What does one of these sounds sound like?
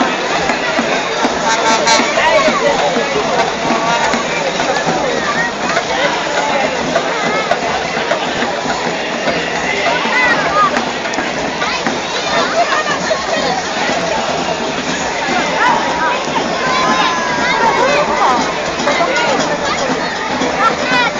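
A crowd chatters and calls out all around, outdoors.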